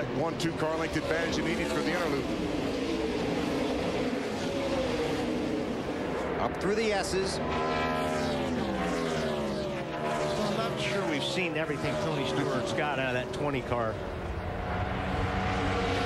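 Race car engines roar at high revs as the cars speed past.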